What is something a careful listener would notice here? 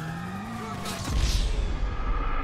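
A heavy thud booms as a motorcycle crashes.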